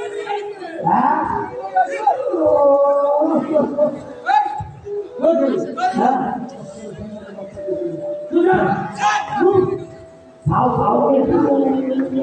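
Men shout and argue loudly over loudspeakers.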